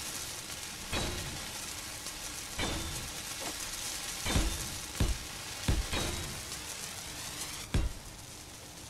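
Heavy metal blocks clunk into place one after another.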